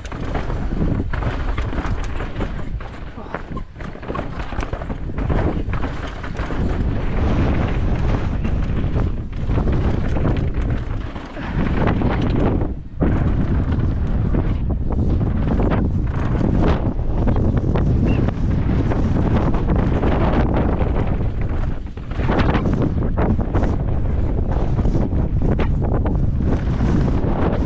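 Bicycle tyres rumble and crunch over a rough dirt and rock trail.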